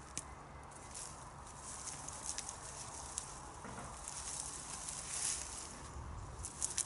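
Leaves rustle and stems snap as a man pulls at plants close by.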